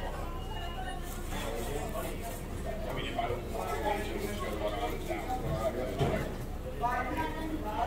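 Paper napkins rustle and crinkle.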